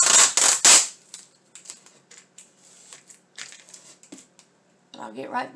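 Hands rub and press tape down with soft rustling.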